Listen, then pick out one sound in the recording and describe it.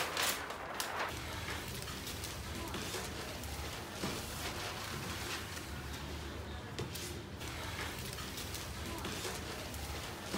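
Fabric rustles as it is smoothed flat by hand.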